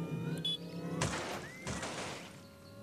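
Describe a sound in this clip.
A car crashes through a wooden fence with loud cracks.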